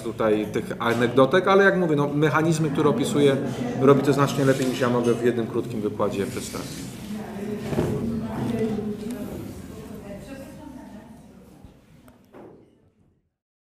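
A man speaks calmly and at length, close by, then fades away.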